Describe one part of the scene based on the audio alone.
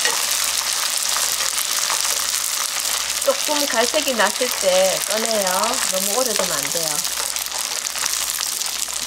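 Oil sizzles and crackles steadily in a hot pan.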